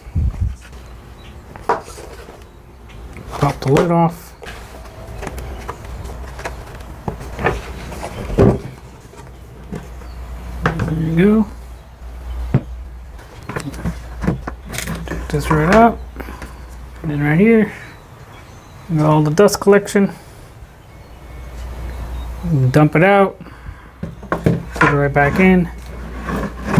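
Plastic buckets knock and rattle as they are handled.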